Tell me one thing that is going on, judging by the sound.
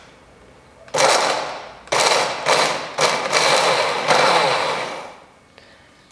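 A hand blender chops frozen fruit with a loud whirring buzz.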